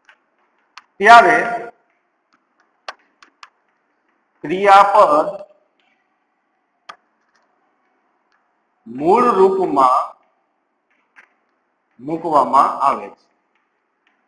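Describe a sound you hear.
A man speaks in short, clear phrases, like a teacher explaining.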